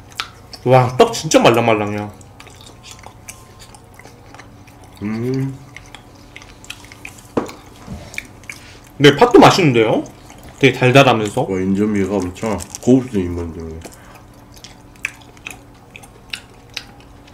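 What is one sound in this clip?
Chewing and soft eating sounds come close up.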